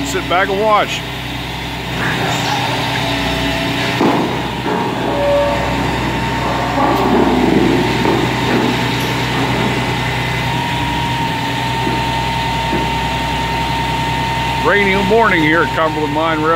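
Heavy diesel engines idle and rumble steadily outdoors.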